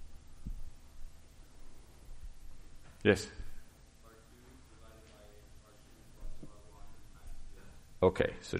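A man speaks calmly through a microphone.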